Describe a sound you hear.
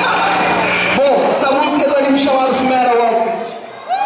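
A young man sings loudly through a microphone.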